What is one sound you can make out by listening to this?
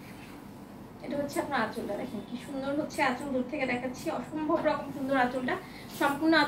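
A young woman speaks close by with animation.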